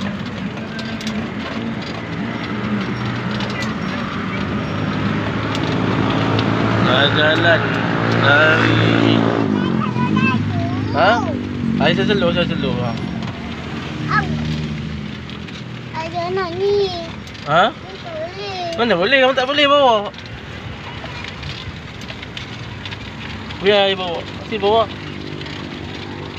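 A pedal cart rattles and rumbles along a paved path.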